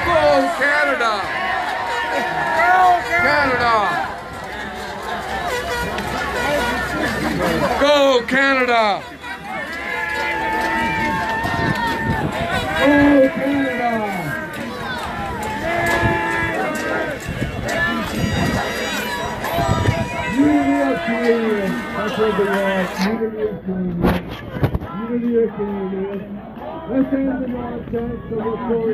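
A crowd of men and women chants and shouts loudly outdoors.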